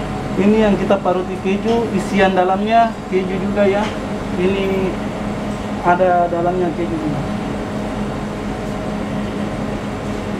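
A hand grater scrapes against a block of cheese.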